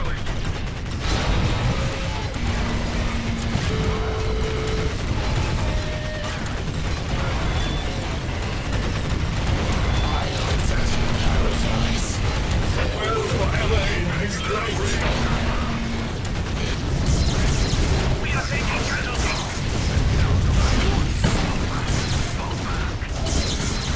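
Guns fire in rapid bursts amid a loud battle.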